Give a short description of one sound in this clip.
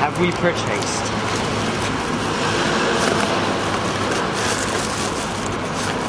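Cardboard rustles as a box is opened.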